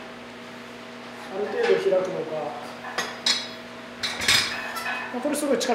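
Metal dumbbells clink on a rack.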